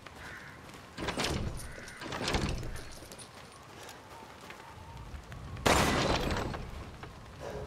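A heavy wooden door is unlocked and swings open with a loud rumble.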